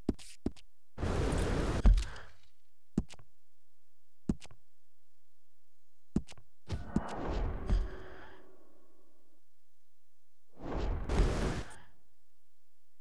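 Soft whooshing swells sound as game menus open.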